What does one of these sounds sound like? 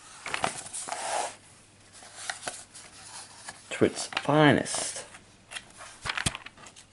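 Paper rustles and crinkles close by as a hand handles a page.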